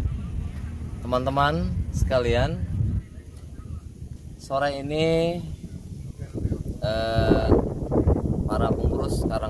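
A man speaks calmly close to the microphone, outdoors.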